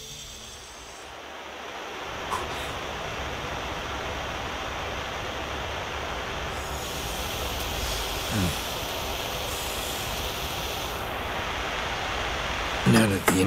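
A blowtorch hisses steadily.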